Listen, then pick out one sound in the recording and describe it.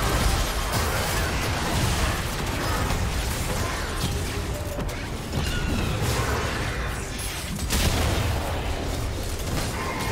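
Weapons clash and strike in a video game fight.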